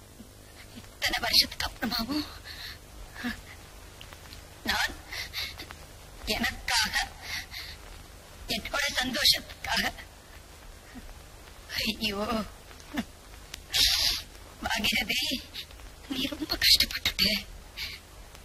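A woman speaks in bursts, close by, with a tearful, pleading voice.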